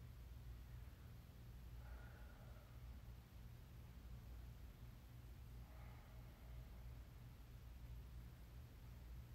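A ceiling fan hums low and steadily.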